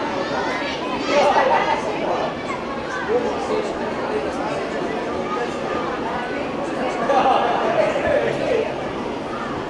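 Children shout and sing in excited bursts nearby.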